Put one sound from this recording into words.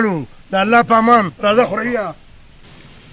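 A man sings loudly and with feeling, close by.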